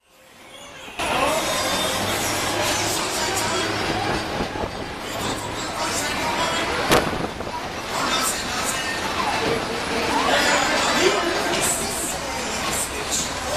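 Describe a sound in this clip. A fairground ride whirs and rattles as its cars swing round.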